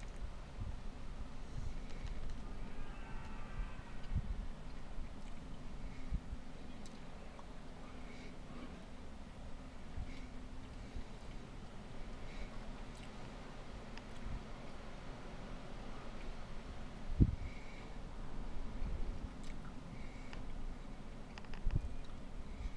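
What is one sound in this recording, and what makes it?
Wind gusts and rumbles across an open field.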